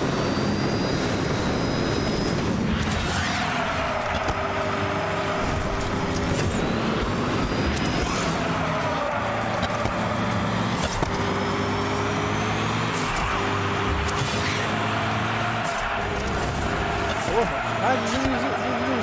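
A toy kart engine whines and revs in a racing game.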